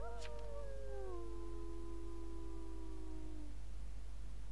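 A soft game chime plays with gently falling tones.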